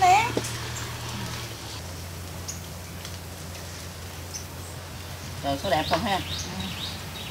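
Middle-aged adults chat briefly nearby, outdoors.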